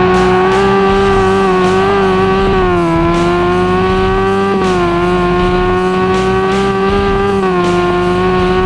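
A car engine roars steadily at high revs, dipping briefly as gears shift.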